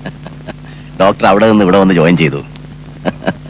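A man laughs loudly nearby.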